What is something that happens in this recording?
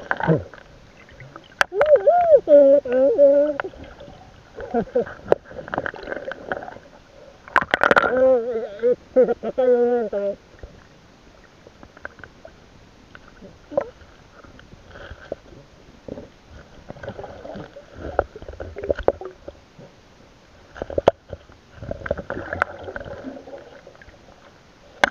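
A net rustles and scrapes as hands pull it underwater.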